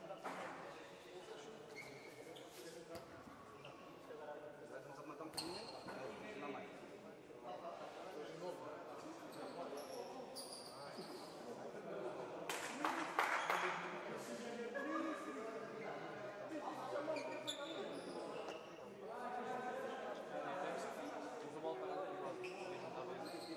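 Several young men talk and call out to each other in a large echoing hall.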